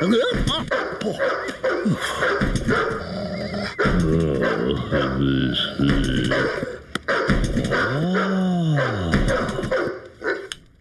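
A man mumbles and hums in a high, wobbly cartoon voice.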